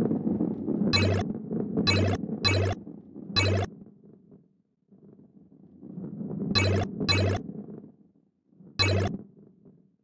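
Coins chime in quick bright pings as they are collected.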